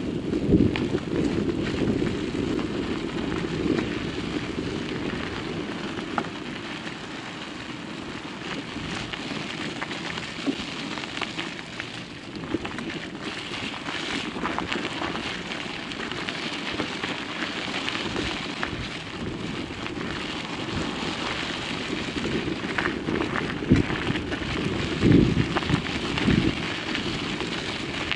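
Tyres crunch and rumble steadily over a rough dirt road.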